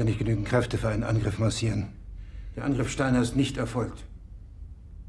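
A man speaks firmly up close.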